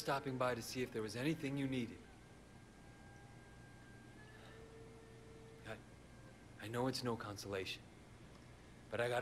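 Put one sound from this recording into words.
A young man speaks quietly and calmly, close by.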